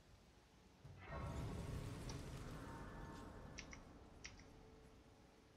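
A shimmering magical swell rises and slowly fades.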